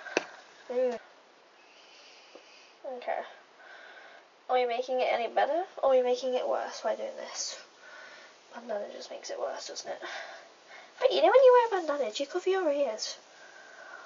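A young woman talks casually and cheerfully, close to a microphone.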